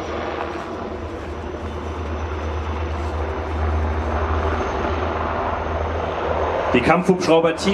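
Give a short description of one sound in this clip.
Heavy tracked vehicles rumble steadily in the distance outdoors.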